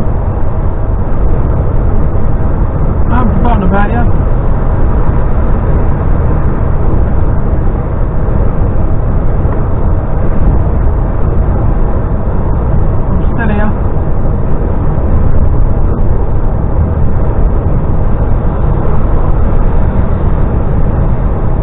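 A vehicle drives steadily, with a loud low rumble of road and wind noise.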